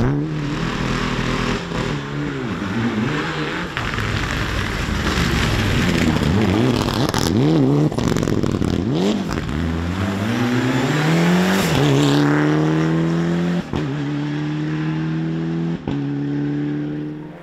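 A rally car engine revs hard and roars, rising in pitch as the car accelerates away.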